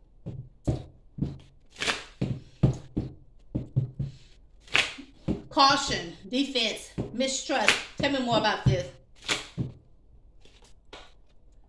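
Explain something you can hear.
Playing cards riffle and snap as they are shuffled by hand.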